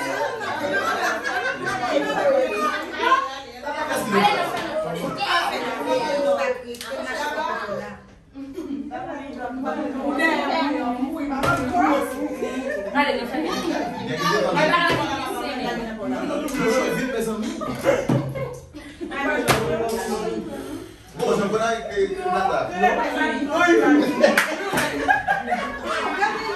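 Several women chatter and laugh nearby.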